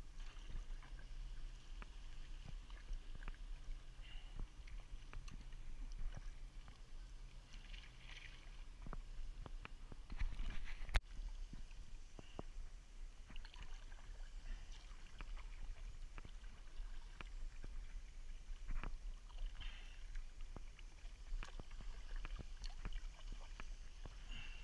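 Water laps gently against a kayak hull.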